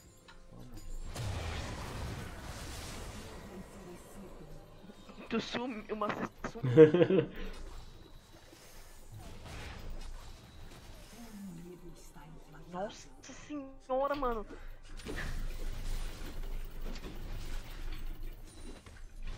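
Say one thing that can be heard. Video game sound effects clash and whoosh.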